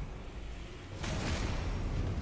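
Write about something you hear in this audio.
A sword clangs against armour.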